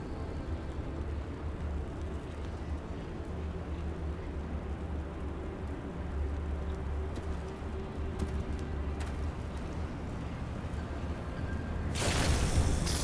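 Lava bubbles and rumbles low and steadily.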